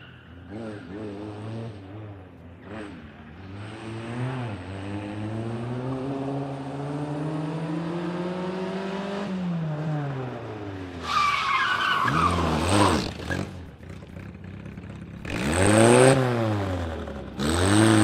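A small car engine revs hard, rising and falling in pitch as the car accelerates and brakes.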